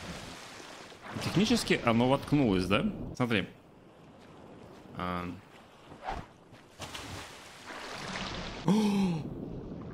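Water splashes and swishes around a swimmer.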